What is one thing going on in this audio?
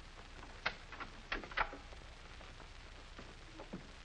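A door opens and closes.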